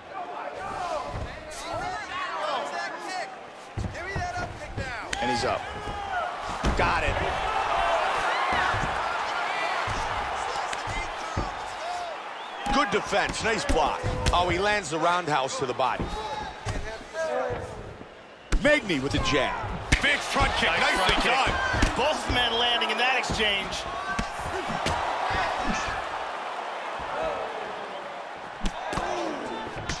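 Punches and kicks thud against bodies.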